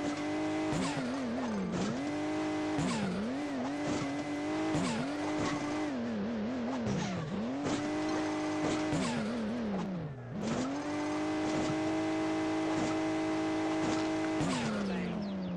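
A game car engine revs up and down.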